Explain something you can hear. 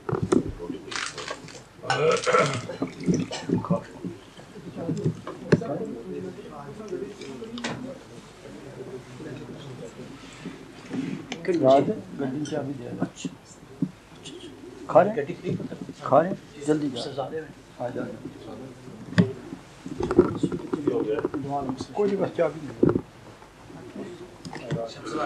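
Plates and cutlery clink as men eat.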